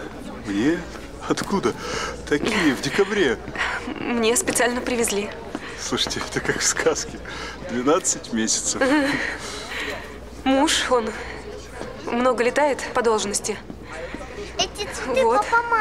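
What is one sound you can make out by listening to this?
A woman speaks softly and happily close by.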